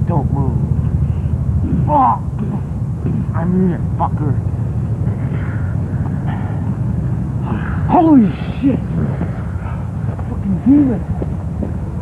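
A young child squeals and shrieks close by.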